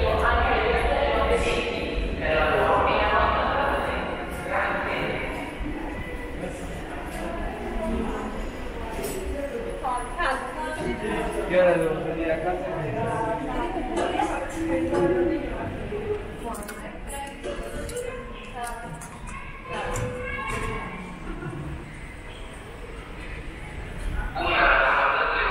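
Footsteps echo on a hard floor in a large, echoing hall.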